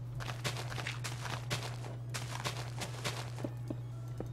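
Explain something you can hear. Dirt blocks crunch as they are dug out in quick succession.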